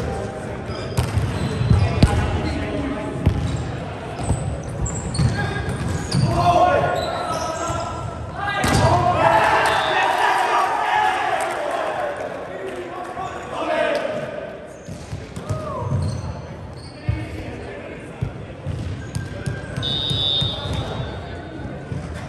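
A volleyball thumps off players' hands and arms in a large echoing hall.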